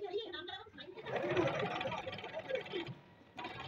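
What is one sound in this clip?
A sewing machine whirs as it stitches fabric.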